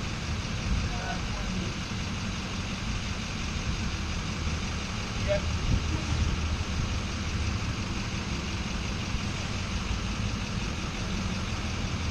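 Traffic rumbles steadily in the distance outdoors.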